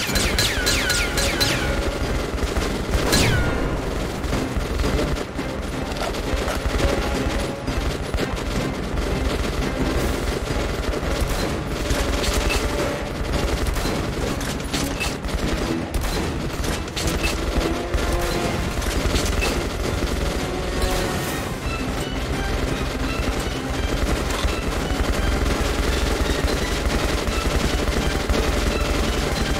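Gunfire bursts and cracks repeatedly.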